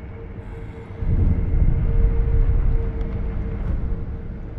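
A bright magical shimmer hums as a spirit flame flares up.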